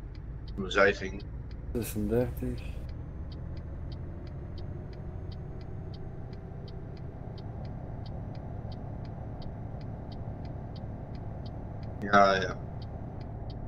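A truck engine hums steadily at low pitch.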